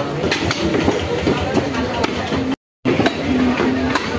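Raw meat slaps onto a wooden block.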